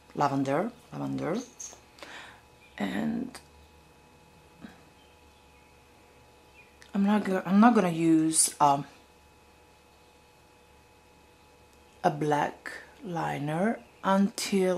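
A young woman talks calmly and close to the microphone, in bursts with pauses.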